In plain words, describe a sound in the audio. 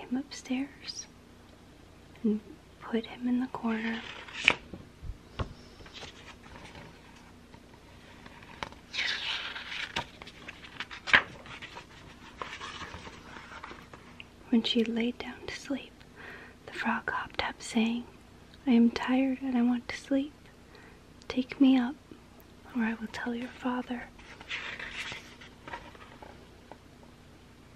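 A young woman whispers softly, very close to a microphone.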